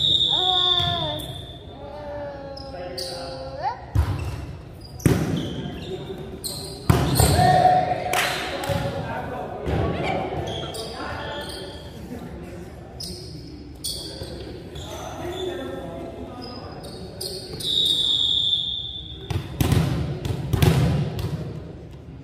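A volleyball is struck and bounces sharply in a large echoing hall.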